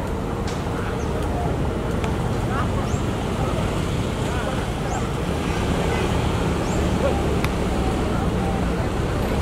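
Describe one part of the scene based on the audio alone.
Young men chat faintly outdoors.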